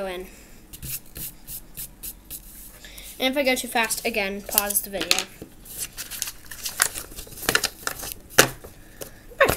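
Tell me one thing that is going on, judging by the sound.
Sheets of paper rustle and flap.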